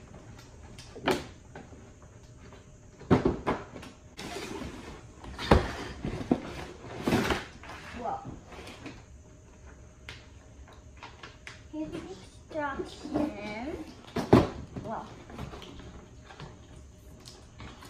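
A cardboard box rustles and scrapes on a wooden floor as it is opened.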